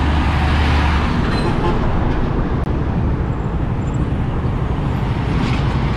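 A truck roars past close by.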